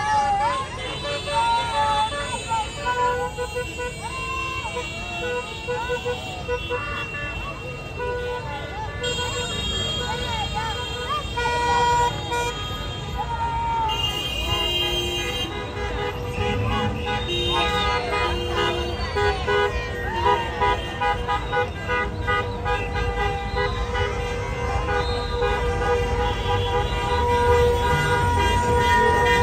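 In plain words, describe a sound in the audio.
Car horns honk.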